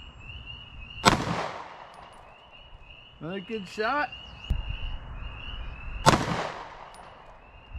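A pistol fires close by, each shot echoing outdoors.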